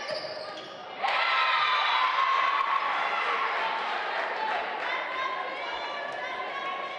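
A crowd of spectators cheers loudly.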